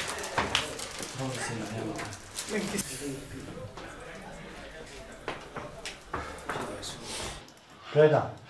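Men murmur in the background.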